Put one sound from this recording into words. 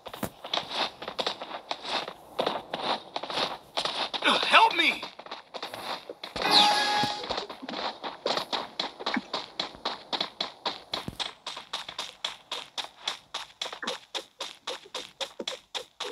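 Footsteps run quickly and steadily on hard ground.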